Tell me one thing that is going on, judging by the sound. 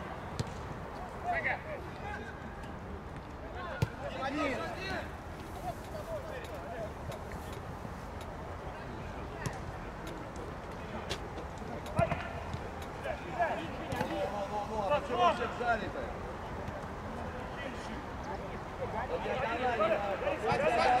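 Young men shout to each other outdoors across a wide field.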